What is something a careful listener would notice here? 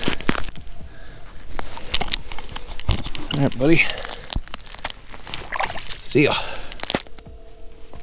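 Snow and ice crunch and scrape under gloved hands.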